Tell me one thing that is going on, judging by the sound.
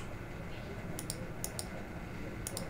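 Menu buttons click softly.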